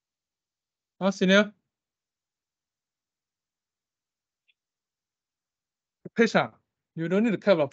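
A young man speaks calmly over an online call, with pauses.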